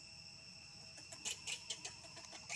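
A baby monkey squeals in short, shrill cries.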